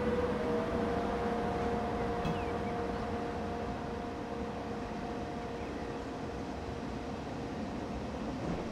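A freight train rumbles past close by, wheels clattering on the rails.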